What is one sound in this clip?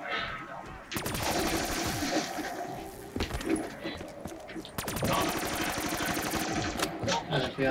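A gun fires in rapid bursts with loud blasts.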